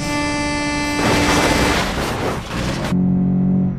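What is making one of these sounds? A car crashes with a loud crunch of metal.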